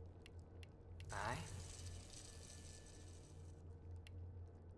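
A stone mechanism turns with a rising whir.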